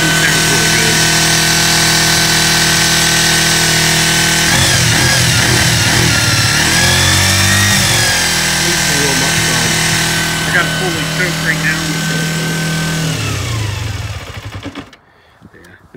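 A motorcycle engine idles steadily close by, then cuts off.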